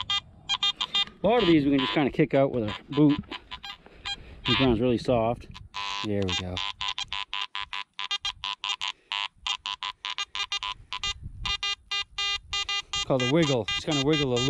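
A metal detector beeps and warbles in rapid, repeated tones.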